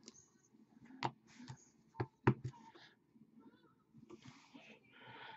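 Hands tap and slide a card against a cardboard box.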